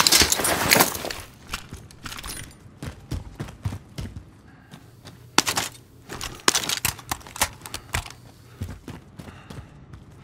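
Quick footsteps tap across a hard floor.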